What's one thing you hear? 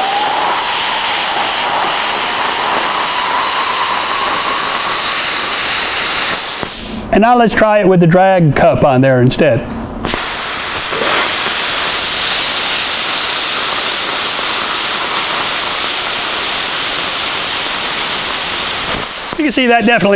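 A plasma cutter hisses steadily as it cuts through metal.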